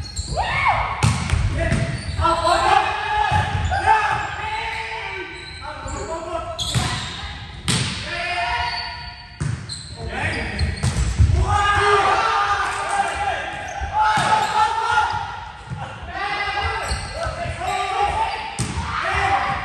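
A volleyball thumps off players' hands and arms.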